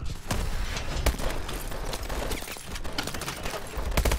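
A gun is reloaded with a metallic clack.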